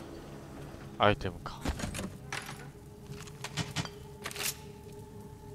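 A metal chest lid clanks open.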